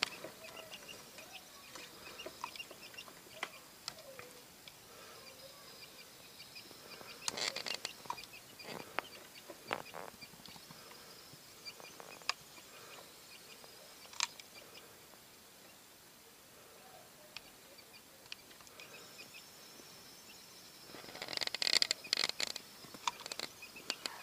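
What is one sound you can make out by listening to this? Newly hatched quail chicks peep with high, thin chirps.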